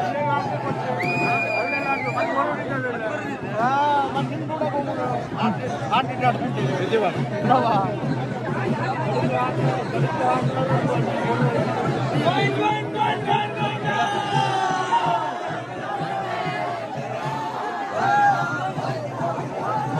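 Men cheer and whoop loudly.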